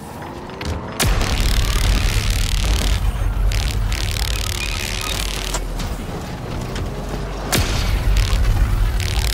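A plasma beam weapon fires with a crackling hum in a video game.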